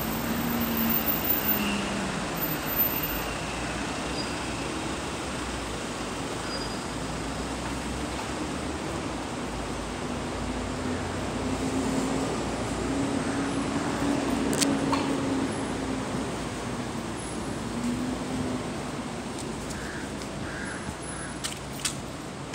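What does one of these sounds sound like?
Traffic hums steadily along a nearby street outdoors.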